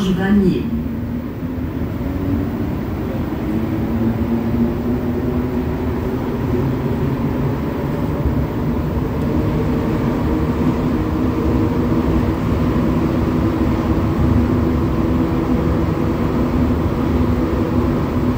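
A train's electric motor hums and rises in pitch as the train speeds up.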